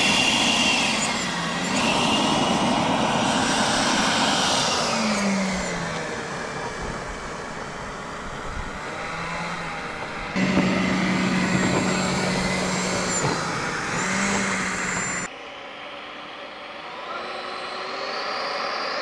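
A model plane's engine whines loudly and rises and falls in pitch as it speeds by.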